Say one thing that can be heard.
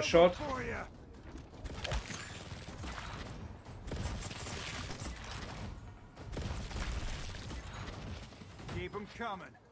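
Gunfire rattles in short bursts.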